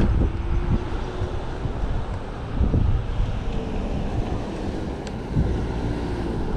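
Wind rushes and buffets loudly past a moving bicycle.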